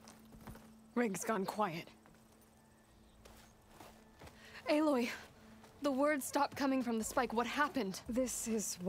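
A woman speaks calmly and clearly up close.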